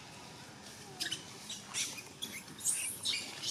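Leaves rustle and branches shake as a monkey climbs through a tree.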